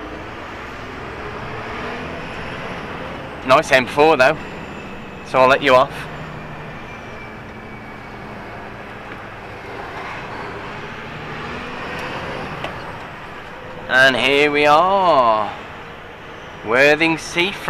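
A vehicle engine hums steadily from inside the cab.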